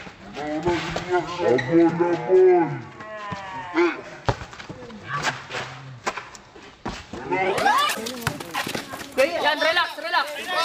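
Young men shout and call out outdoors.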